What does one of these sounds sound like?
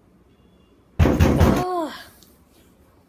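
A young boy groans sleepily close by.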